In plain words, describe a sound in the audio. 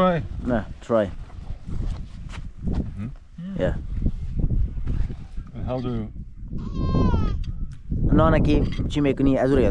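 Men talk casually nearby outdoors.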